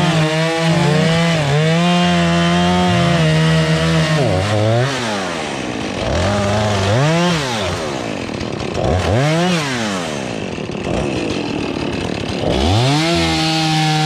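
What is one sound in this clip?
A chainsaw engine roars while cutting through logs, revving up and down.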